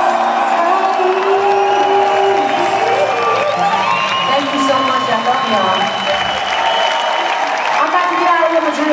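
Loud electronic music plays through loudspeakers in a large echoing hall.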